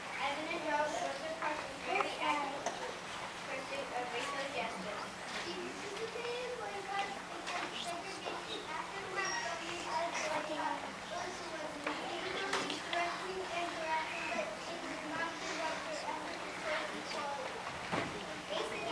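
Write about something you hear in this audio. A young girl reads aloud into a microphone in a large hall.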